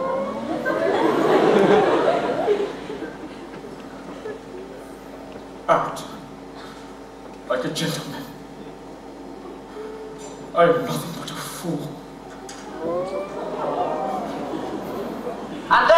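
A young man sings, heard from across a large echoing hall.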